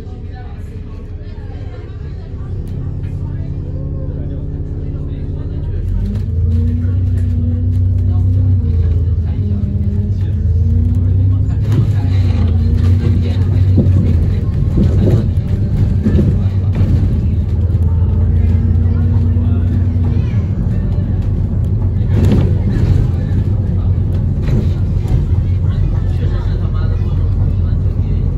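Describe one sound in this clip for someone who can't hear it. A bus engine rumbles and whines, growing louder as the bus pulls away and speeds up.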